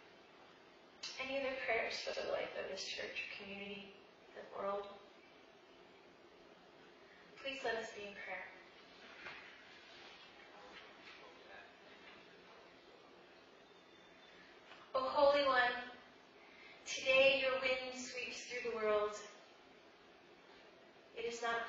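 A woman speaks calmly through a microphone in a large echoing hall, pausing between phrases.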